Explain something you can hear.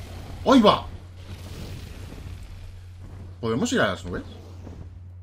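A dragon screeches loudly twice.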